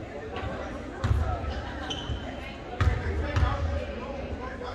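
A basketball bounces on a wooden floor with hollow thumps.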